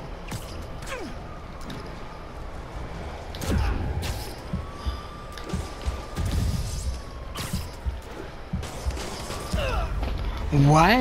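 Wind rushes past in strong whooshing gusts.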